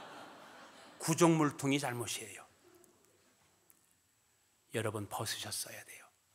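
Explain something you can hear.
A middle-aged man speaks forcefully into a microphone in a large echoing hall.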